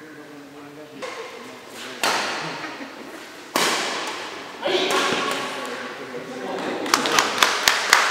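Rackets strike a shuttlecock in an echoing hall.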